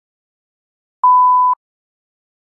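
A test-pattern tone beeps briefly.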